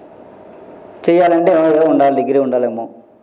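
A man speaks calmly into a microphone close by.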